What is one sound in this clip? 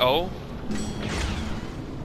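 A blaster pistol fires a short zap.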